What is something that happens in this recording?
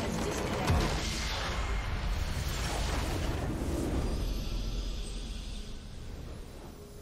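A loud game explosion booms and rumbles, then fades.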